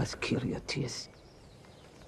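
A woman speaks firmly in a low voice, close by.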